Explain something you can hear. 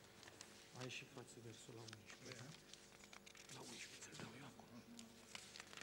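A pen scratches on paper.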